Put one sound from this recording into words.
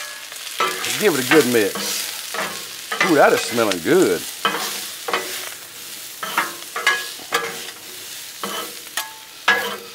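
A metal spatula scrapes and clatters on a hot griddle.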